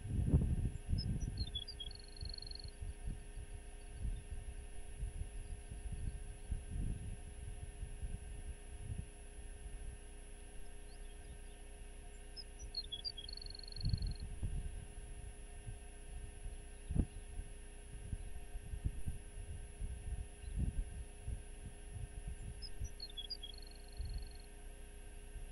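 A small bird calls with a short chirping song.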